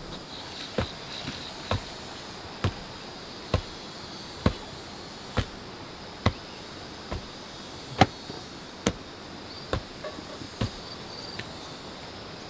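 A heavy pole pounds the earth with steady, rhythmic thuds.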